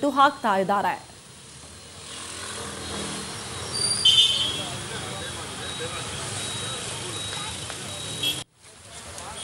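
Motorbikes and traffic rumble along a busy street.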